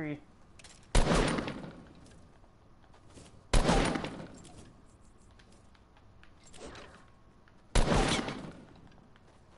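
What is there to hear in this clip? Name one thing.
Gunshots fire in bursts.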